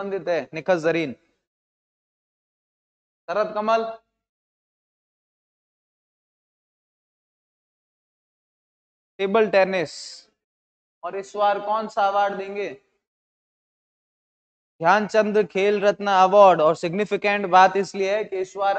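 A young man speaks with animation into a close microphone, pausing between phrases.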